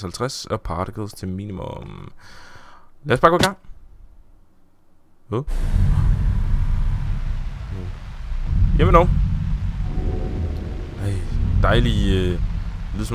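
A man talks with animation, close to a microphone.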